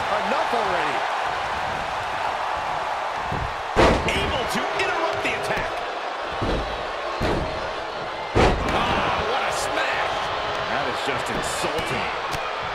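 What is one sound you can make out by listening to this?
A large crowd cheers and roars steadily in a big arena.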